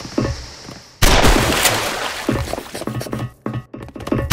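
A grenade bursts with a loud bang.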